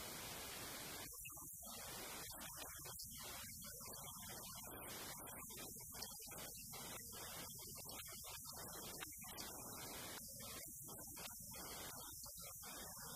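A second woman speaks calmly into a microphone.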